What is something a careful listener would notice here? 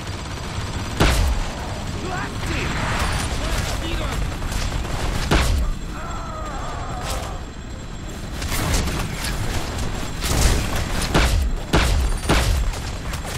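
Loud rifle shots ring out one at a time, with a short echo after each.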